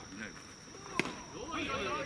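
A bat cracks against a ball outdoors.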